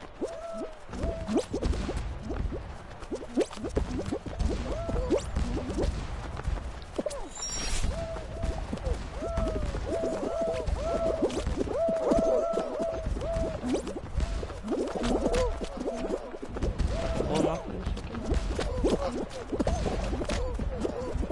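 Cartoon characters make short, bouncy boing sounds again and again as they jump and run.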